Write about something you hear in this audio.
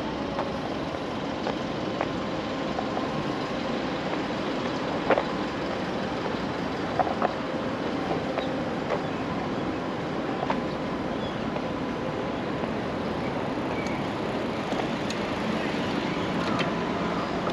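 Footsteps tap steadily on paving stones.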